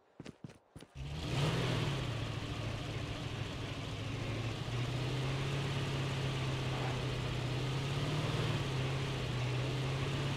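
A buggy engine starts and drones steadily, rising and falling in pitch.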